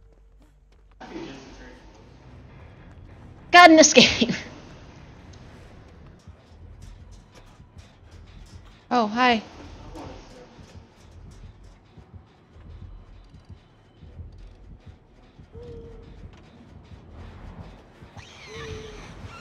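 A young woman talks and exclaims loudly into a close microphone.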